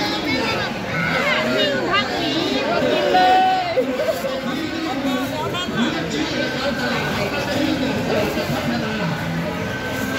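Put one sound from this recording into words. Plastic bags rustle as a vendor handles them.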